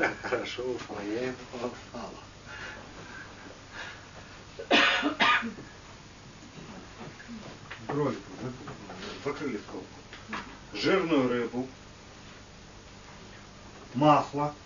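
A man speaks calmly in a small room, pausing between phrases.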